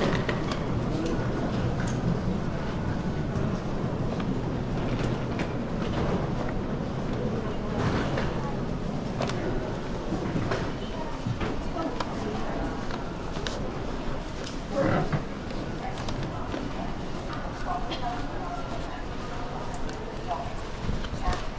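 Footsteps pad on a carpeted floor.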